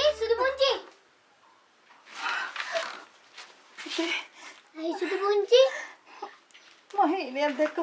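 A woman speaks emotionally, close by.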